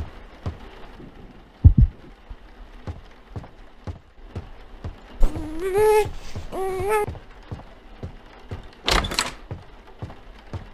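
Footsteps thud steadily across a floor.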